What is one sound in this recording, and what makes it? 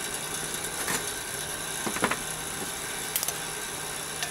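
A metal pot clinks.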